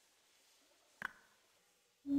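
A metal lever clunks.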